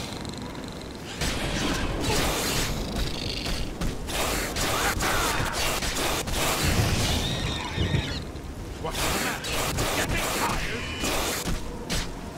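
A lizard-like creature snarls and growls.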